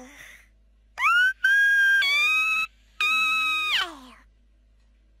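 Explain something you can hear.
A kitten mews loudly with a long, high yawn.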